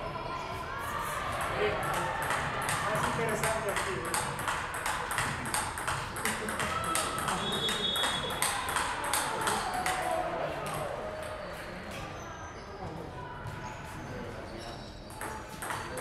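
A table tennis ball clicks quickly back and forth off paddles and the table in a large, echoing hall.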